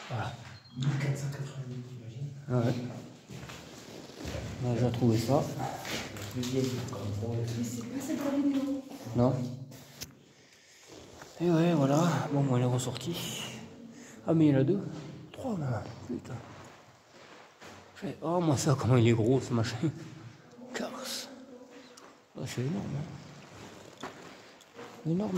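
Young men talk close by.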